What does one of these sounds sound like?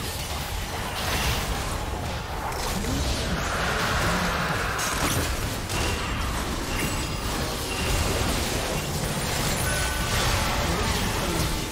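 Magic blasts whoosh and explode.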